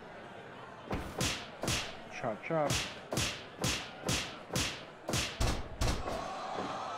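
Punches and slaps land with sharp thuds in a quick series.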